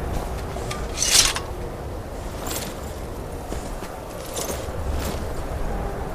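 A horse's hooves crunch through snow.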